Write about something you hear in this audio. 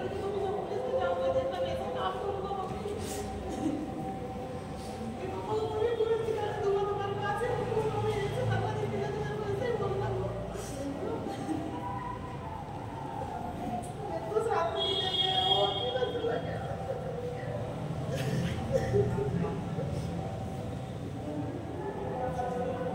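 A group of men and women chant together in unison.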